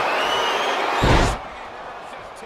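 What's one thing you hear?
A body slams hard onto a ring mat with a thud.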